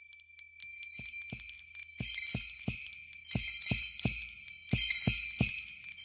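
A drum beats a steady rhythm.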